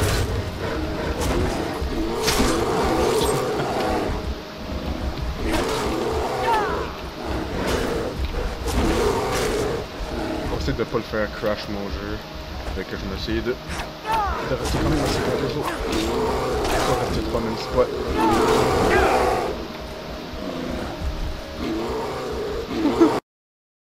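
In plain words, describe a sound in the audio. Brown bears growl and roar.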